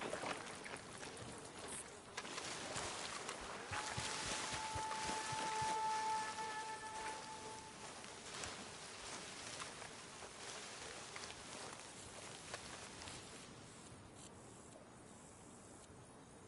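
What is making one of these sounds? Footsteps rustle through leafy plants.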